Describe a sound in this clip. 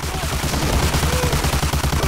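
A shotgun fires a loud blast.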